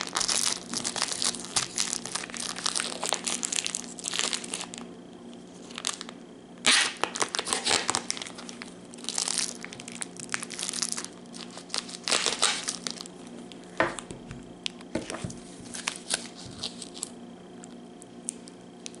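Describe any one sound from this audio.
A knife snips and scrapes at plastic wrapping.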